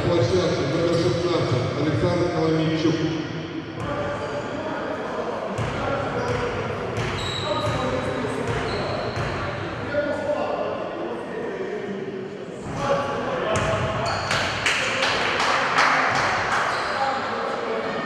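Voices of spectators and players echo through a large hall.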